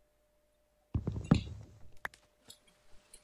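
An axe chops at wood in quick knocks.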